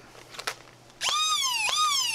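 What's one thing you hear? A toy blaster fires with loud electronic zapping tones.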